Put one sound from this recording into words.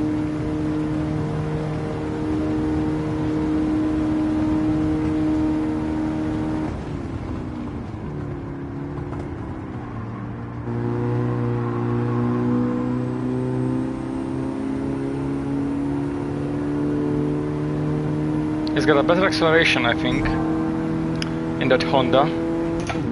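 A car engine drones steadily, dropping in pitch as it shifts down and then slowly rising again.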